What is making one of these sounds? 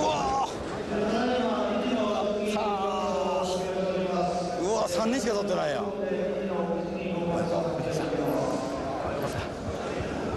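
An elderly man speaks cheerfully up close.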